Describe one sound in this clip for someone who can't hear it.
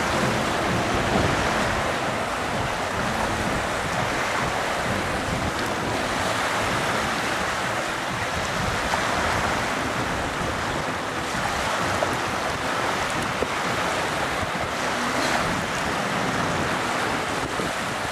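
Wind blows hard outdoors.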